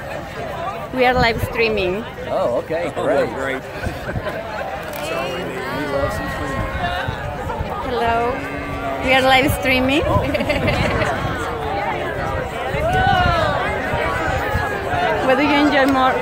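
Men and women close by talk and laugh cheerfully.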